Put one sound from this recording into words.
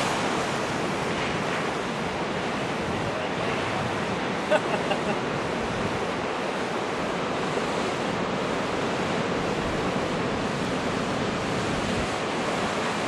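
Ocean waves crash and wash onto the shore outdoors.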